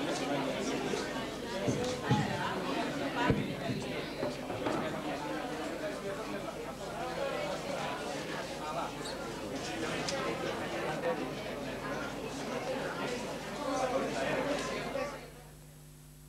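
A crowd of men and women chatter loudly all around in an echoing hall.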